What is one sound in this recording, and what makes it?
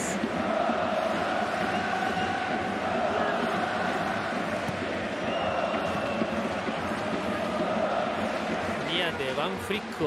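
A large stadium crowd chants and sings loudly.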